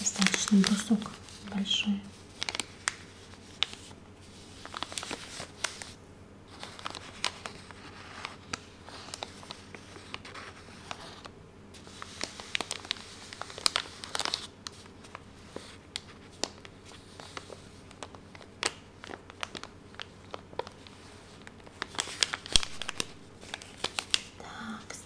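Fingernails tap and scratch on paper wrapping.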